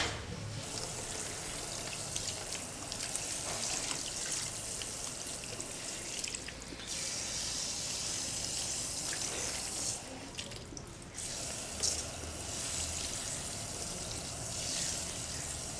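Water sprays steadily from a shower head onto hair.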